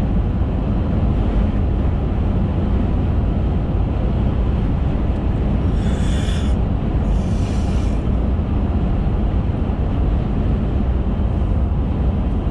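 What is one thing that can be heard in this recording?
Wind rushes against a moving car.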